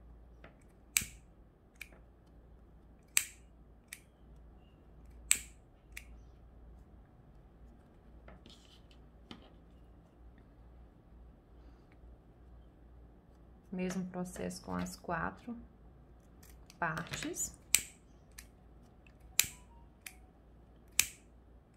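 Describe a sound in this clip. A lighter clicks sharply now and then.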